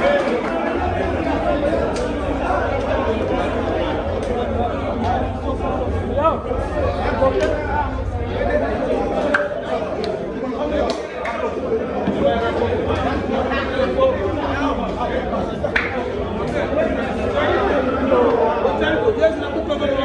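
A crowd of men talk and shout excitedly close by, in an echoing room.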